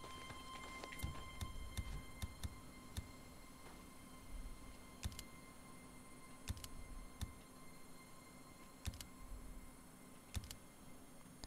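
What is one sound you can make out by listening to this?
Soft clicks tick now and then as a selection menu turns.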